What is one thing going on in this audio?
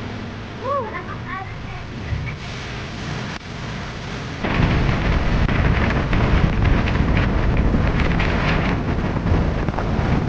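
Wind buffets the microphone, growing much stronger partway through.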